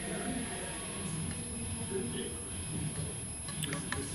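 A spoon clinks against a cup.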